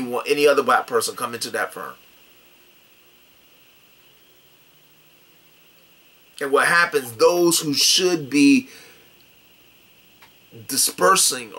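A middle-aged man talks with animation close to a microphone, pausing now and then.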